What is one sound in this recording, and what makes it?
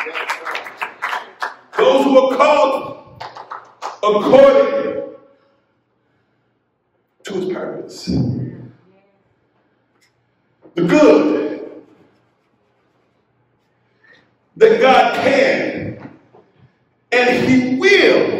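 A man preaches with animation into a microphone, in bursts with pauses.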